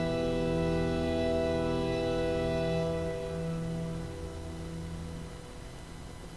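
An organ chord sounds and fades away in a large echoing hall.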